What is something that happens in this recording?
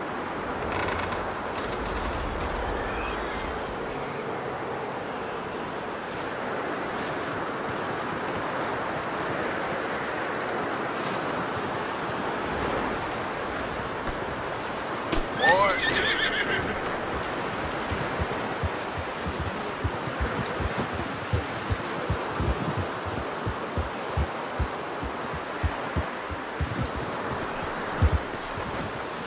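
Wind blows steadily through a snowstorm outdoors.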